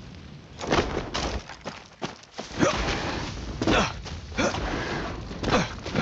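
Leaves and branches rustle as someone pushes through bushes.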